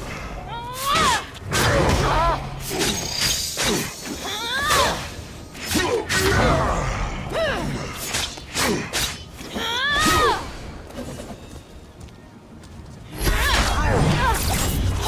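A creature shrieks in rising and falling cries.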